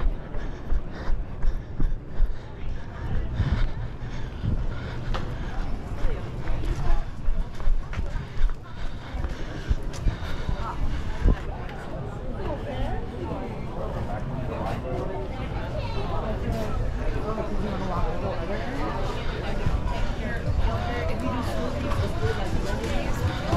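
Footsteps thump steadily on pavement close by.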